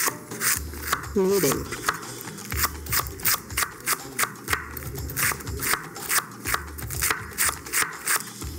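A knife chops rapidly on a wooden cutting board.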